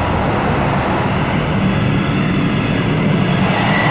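A jet plane roars past.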